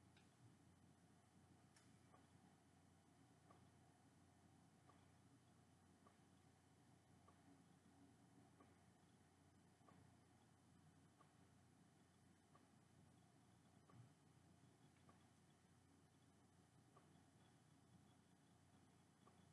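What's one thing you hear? Soft menu ticks sound each time a selection moves.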